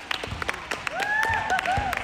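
A crowd of spectators cheers in an echoing gym.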